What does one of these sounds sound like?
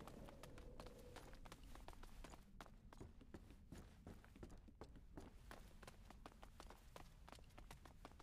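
Footsteps echo on stone in a vaulted tunnel.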